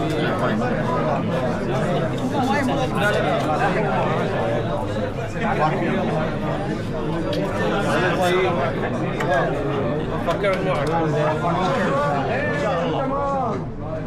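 A crowd of men talk and greet each other at once, close by.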